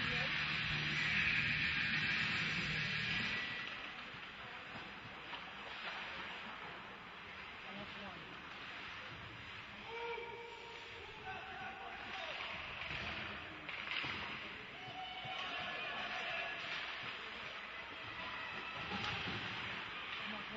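A crowd of spectators murmurs and calls out in a large echoing arena.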